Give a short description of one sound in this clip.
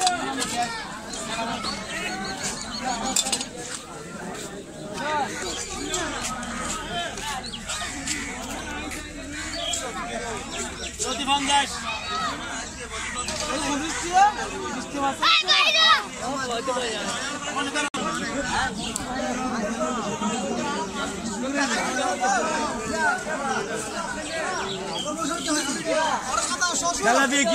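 Many men chatter and call out close by, outdoors among a busy crowd.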